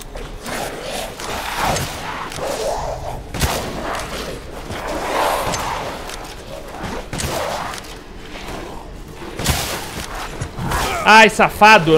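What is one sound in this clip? Shotgun blasts boom in short bursts.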